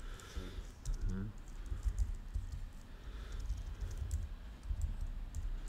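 Computer keys click quickly as someone types.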